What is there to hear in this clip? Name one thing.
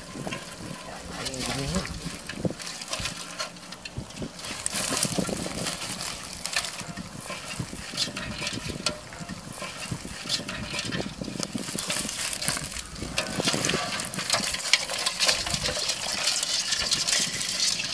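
Crabs and shrimp rattle and scrape in a plastic basin.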